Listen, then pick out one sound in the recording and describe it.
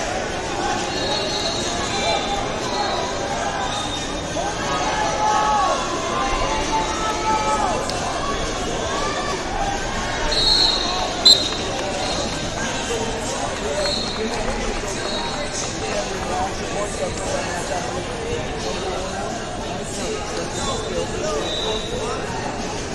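Shoes squeak on a mat.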